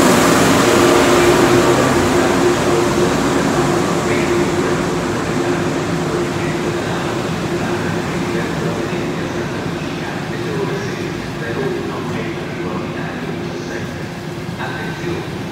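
A high-speed train rumbles past on the tracks and slowly fades.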